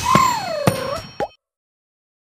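A magical chime swoops down and back up with sparkling pings.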